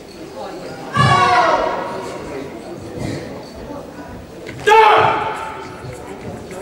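A young man lets out sharp, loud shouts.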